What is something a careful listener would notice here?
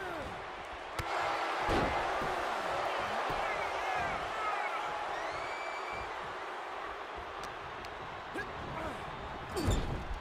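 A body slams heavily onto a wrestling ring mat with a loud thud.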